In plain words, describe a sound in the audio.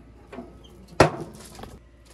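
A metal grill lid bangs shut.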